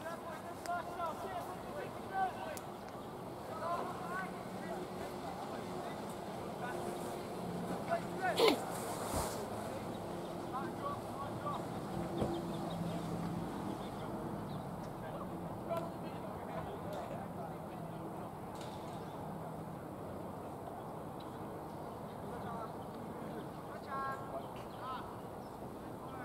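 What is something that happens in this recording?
Distant voices murmur and call out across an open outdoor field.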